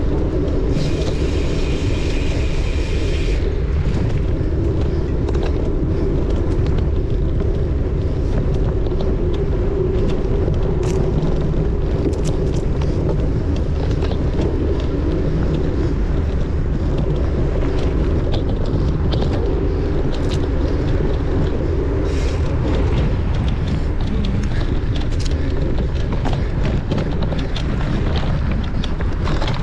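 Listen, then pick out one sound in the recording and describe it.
Tyres rumble and crunch over dirt and twigs.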